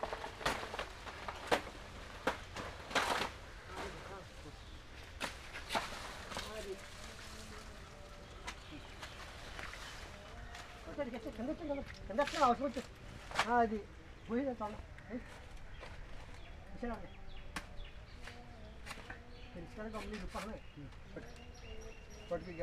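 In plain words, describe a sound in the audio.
Dry leaves rustle and crackle underfoot.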